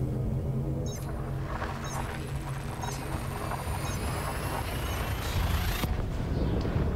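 A rushing whoosh builds up and then suddenly cuts off.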